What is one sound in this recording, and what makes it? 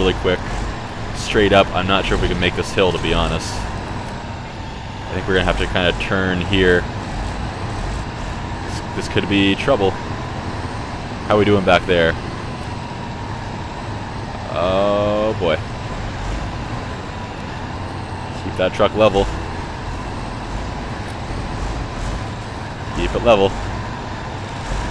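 A heavy truck engine rumbles steadily as the truck crawls over rough ground.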